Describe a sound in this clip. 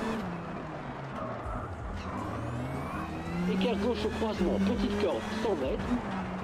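A car engine revs and shifts gears.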